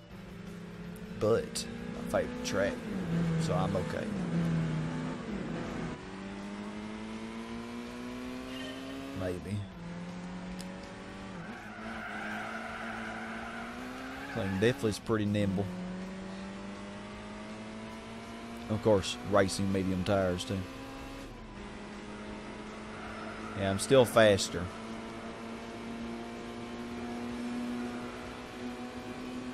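A car engine revs and climbs through the gears.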